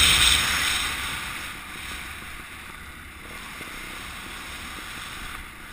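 Bicycle tyres roll over tarmac.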